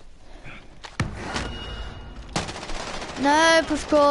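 Gunshots fire in quick bursts close by.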